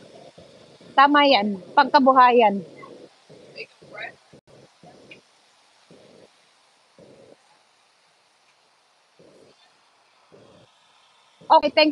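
A woman speaks loudly and close by.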